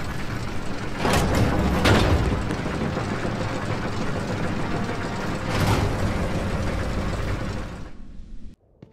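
A heavy metal gate grinds and rumbles.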